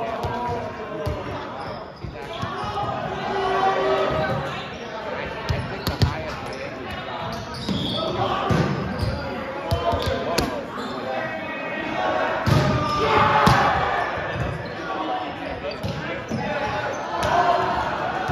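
Young men shout and call out across an echoing gym.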